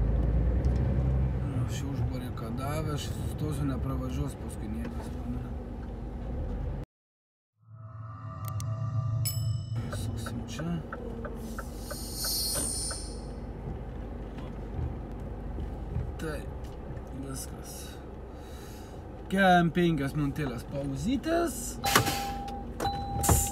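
A truck engine rumbles steadily from inside the cab while driving slowly.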